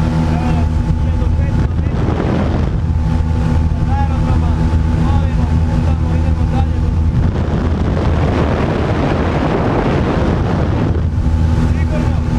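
An airplane engine drones loudly and steadily inside the cabin.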